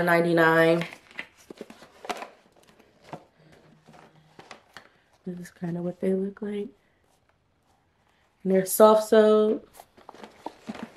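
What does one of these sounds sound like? Cardboard packaging rustles and taps as it is handled.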